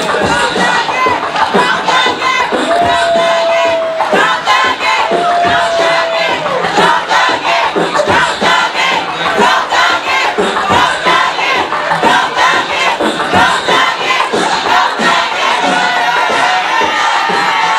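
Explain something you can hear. A crowd cheers and sings along.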